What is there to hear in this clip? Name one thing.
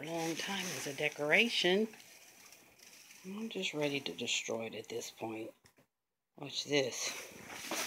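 Tissue paper in a gift bag rustles and crinkles.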